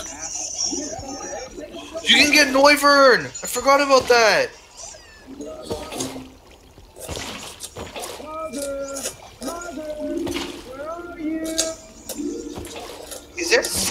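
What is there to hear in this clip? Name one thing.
Water sloshes as a bucket scoops and pours it.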